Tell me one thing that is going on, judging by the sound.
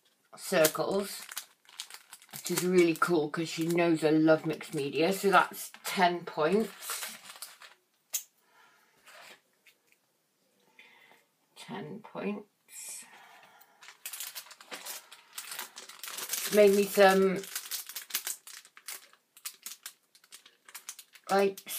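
Plastic and paper rustle and crinkle as they are handled.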